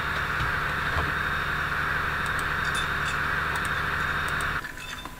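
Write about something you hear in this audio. A locomotive engine idles with a steady low hum.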